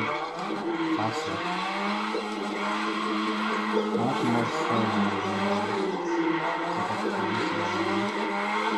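A racing game's car engine roars and revs through a speaker.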